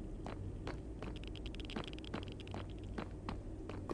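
Food crunches in quick chewing bites.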